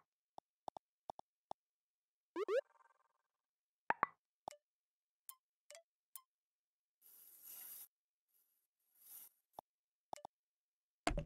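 Soft electronic clicks tick now and then.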